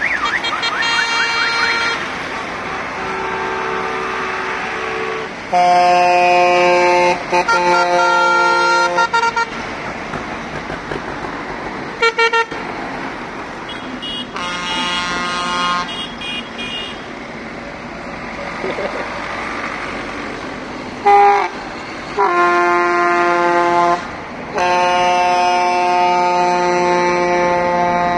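Tractor horns honk loudly in long blasts.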